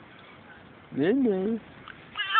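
A toddler squeals loudly.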